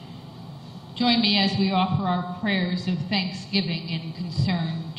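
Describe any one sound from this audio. An older woman speaks calmly through a microphone in a reverberant room.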